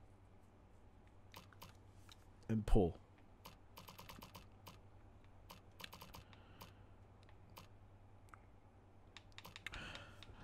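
Short menu clicks sound as selections change.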